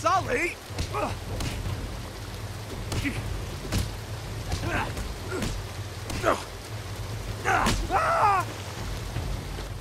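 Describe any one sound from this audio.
Water splashes as men fight in it.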